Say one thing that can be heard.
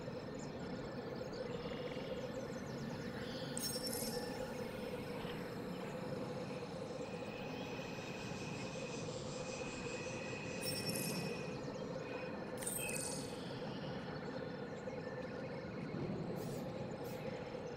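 Water babbles steadily in a shallow stream.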